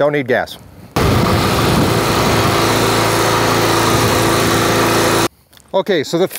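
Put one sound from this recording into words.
A small engine drones loudly.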